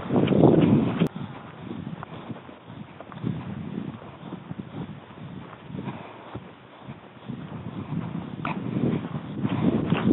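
Footsteps swish through tall grass close by.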